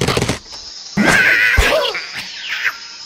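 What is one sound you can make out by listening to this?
Wooden blocks crash and clatter.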